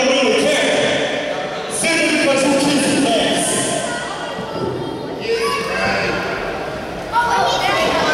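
A man shouts loudly in a large echoing hall.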